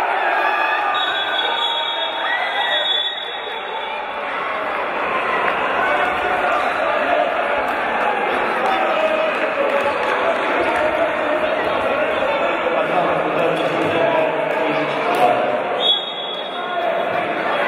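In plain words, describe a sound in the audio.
A whistle blows shrilly.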